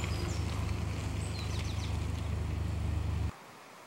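Bicycle tyres crunch on a gravel path as a cyclist rides past.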